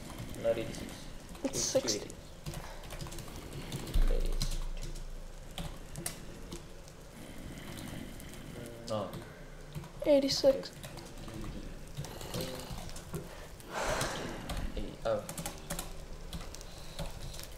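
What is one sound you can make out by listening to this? Fire crackles softly.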